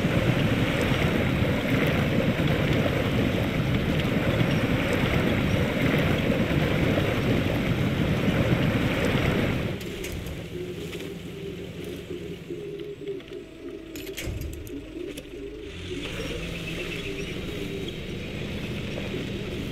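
A truck engine roars and strains under load.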